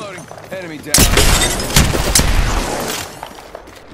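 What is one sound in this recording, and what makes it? A shotgun fires with loud blasts.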